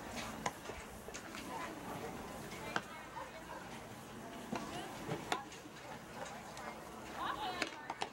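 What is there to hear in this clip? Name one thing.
Spectators chatter and call out at a distance outdoors.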